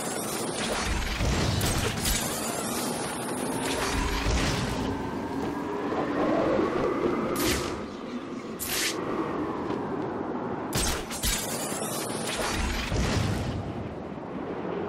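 Wind rushes loudly past, steady and gusting.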